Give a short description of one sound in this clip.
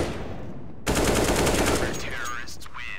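A rifle fires a rapid burst close by.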